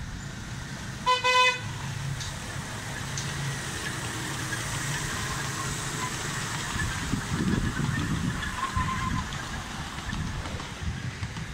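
A small train rumbles along its track.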